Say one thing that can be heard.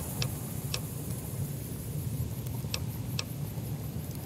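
Short menu clicks tick now and then.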